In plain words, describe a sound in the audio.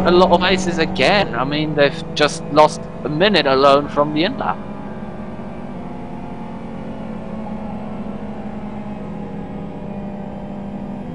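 A racing car engine hums steadily at a low idle.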